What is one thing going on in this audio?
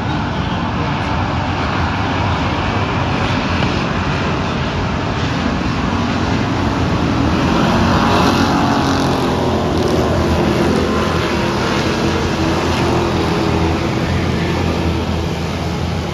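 Many race car engines roar loudly outdoors as the cars circle a dirt track.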